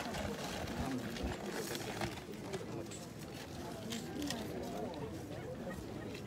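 A paper sack rustles as a man lifts it.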